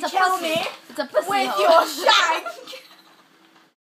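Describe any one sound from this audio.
Two teenage girls laugh loudly close by.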